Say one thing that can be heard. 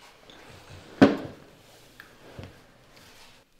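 A glass is set down on a table.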